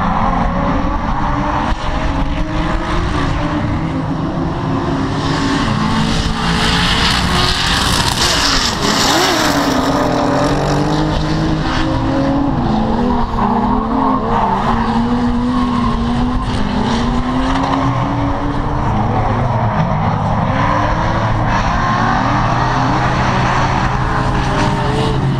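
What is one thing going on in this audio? Car engines rev loudly, rising and falling in pitch.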